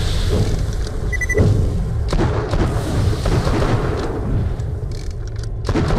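Flames crackle and burst in explosions.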